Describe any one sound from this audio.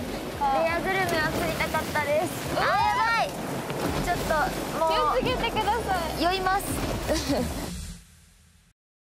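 Wind blusters outdoors over rough water.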